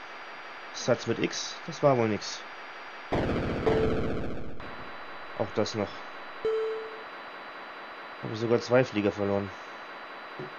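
Electronic game tones chirp in quick falling bursts.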